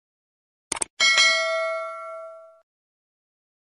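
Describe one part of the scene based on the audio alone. A bell chimes brightly and rings out.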